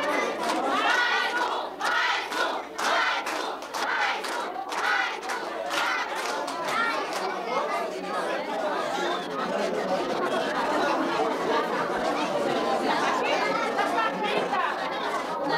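A crowd of children and adults chatters loudly nearby.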